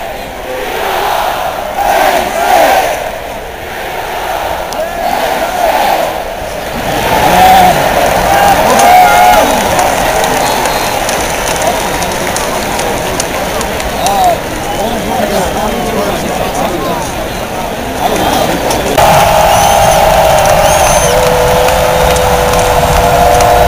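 A large stadium crowd murmurs and cheers all around, in the open air.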